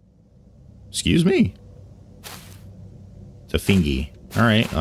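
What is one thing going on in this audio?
A young man speaks with animation into a microphone.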